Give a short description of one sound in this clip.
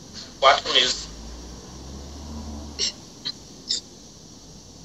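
A man speaks through a video call.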